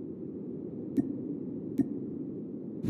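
Game menu buttons click twice.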